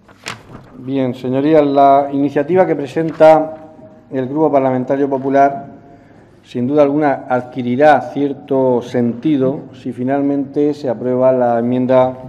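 A man speaks firmly into a microphone, heard through a loudspeaker.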